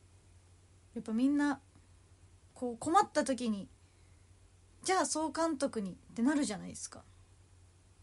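A young woman speaks close by in short, lively bursts.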